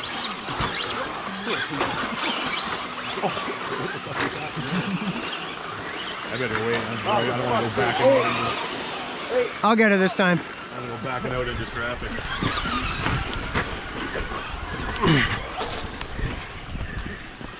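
Tyres of toy cars crunch and scrape on dirt.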